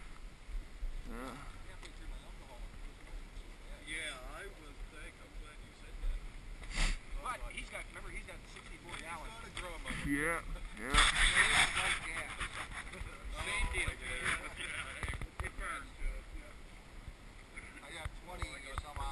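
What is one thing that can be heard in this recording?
Men talk and call out to each other outdoors, some close and some farther off.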